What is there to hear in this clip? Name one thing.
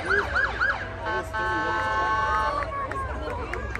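A fire engine horn blares steadily.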